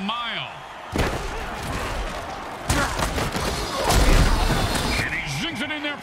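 Armoured players crash together with heavy thuds.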